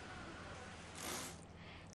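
Plastic bags rustle briefly.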